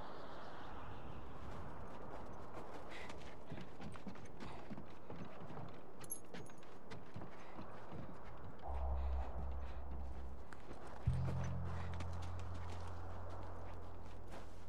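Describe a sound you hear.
Footsteps crunch on snow and creak on wooden boards.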